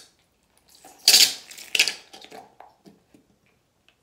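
Water squirts and splashes into a bowl.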